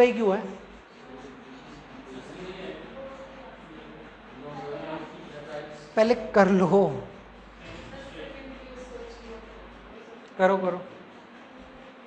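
A young man speaks nearby in a room, pausing often.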